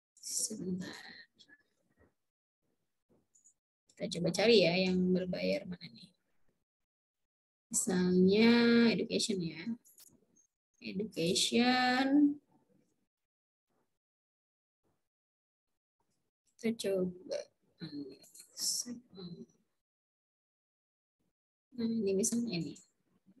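A young woman speaks calmly through an online call, in short bursts with pauses.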